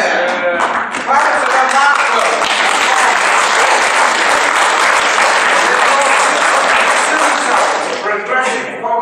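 A young woman claps her hands.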